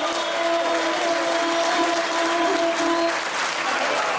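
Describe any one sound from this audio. A young boy sings a long, held note into a microphone.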